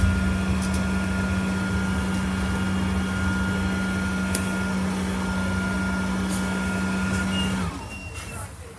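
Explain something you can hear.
A bus engine hums steadily from inside the bus, then winds down as the bus slows.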